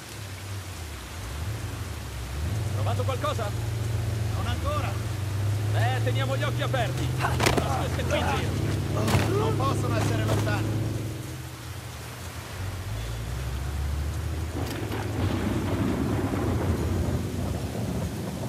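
Tall grass rustles softly as someone creeps through it.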